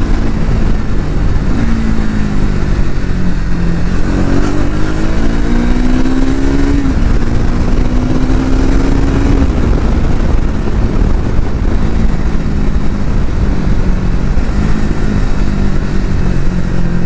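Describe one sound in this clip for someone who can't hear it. A motorcycle engine drones close by, its pitch rising and dropping through gear changes.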